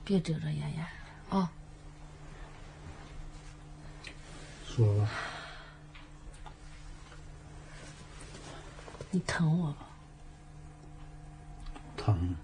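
A middle-aged woman speaks close by in a coaxing, pressing tone.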